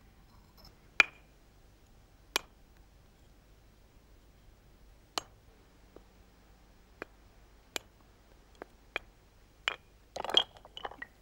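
An antler tool presses and snaps small flakes off a flint with sharp clicks.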